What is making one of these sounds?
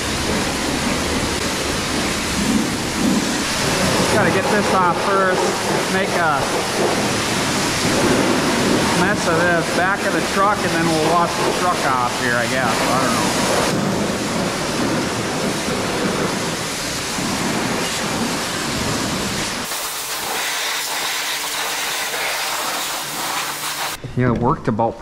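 A pressure washer sprays water in a loud, steady hiss.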